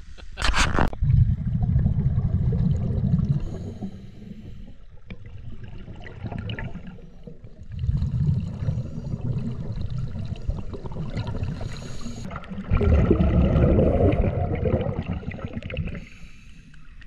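Air bubbles gurgle and rumble loudly underwater in bursts.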